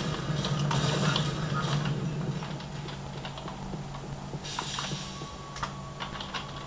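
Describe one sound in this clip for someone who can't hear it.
Keyboard keys click under fingers.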